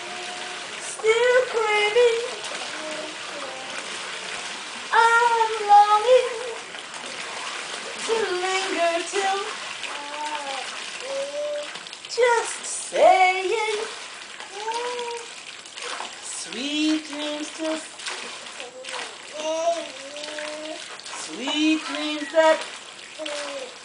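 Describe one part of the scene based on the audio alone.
A toddler babbles and squeals.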